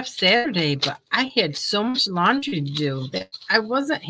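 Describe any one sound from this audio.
Scissors snip through lace.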